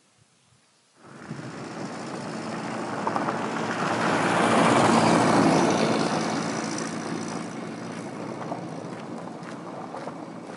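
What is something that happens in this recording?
A car drives past on a gravel road, growing loud and then fading into the distance.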